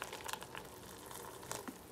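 Water pours from a kettle into a plastic tub.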